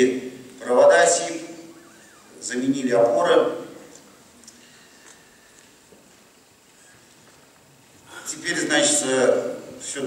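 A middle-aged man speaks calmly through a microphone in an echoing hall, pausing between phrases.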